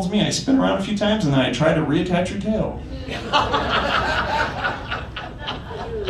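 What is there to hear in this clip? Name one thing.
A young man speaks calmly into a microphone through loudspeakers in a large room.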